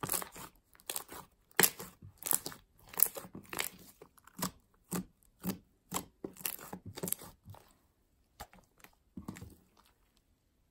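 Sticky slime squelches and pops as hands squeeze and stretch it.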